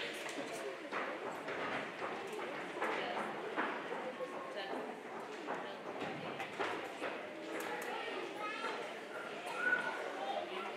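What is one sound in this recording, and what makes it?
Young children chatter and call out in a large echoing hall.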